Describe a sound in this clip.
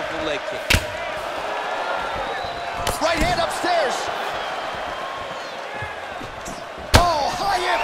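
A crowd cheers and whistles in a large arena.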